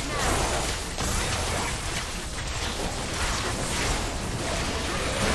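Magic blasts and fighting sounds from a video game crackle and whoosh.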